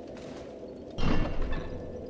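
A heavy stone lever grinds as it is pulled.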